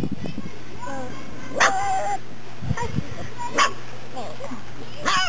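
Puppies whimper and squeak up close.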